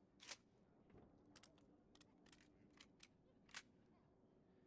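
Metal parts of a rifle click and clack as it is handled.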